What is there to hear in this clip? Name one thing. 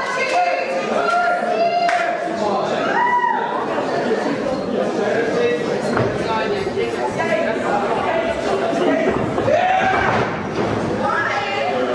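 A crowd cheers and chants loudly in an echoing hall.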